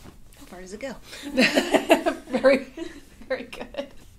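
A young woman exclaims and laughs loudly close by.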